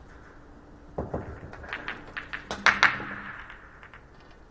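Pool balls clatter and knock against each other and the cushions.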